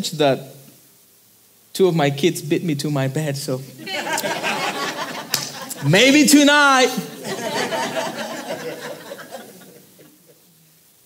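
A young man speaks with animation to an audience through a microphone.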